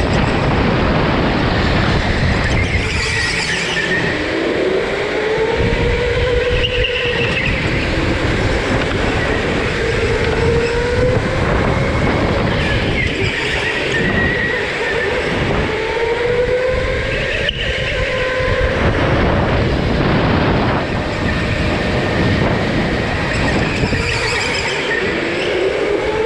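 An electric go-kart motor whines, rising and falling in pitch as it speeds up and slows down.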